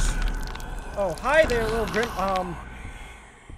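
A young man speaks with animation into a microphone, close up.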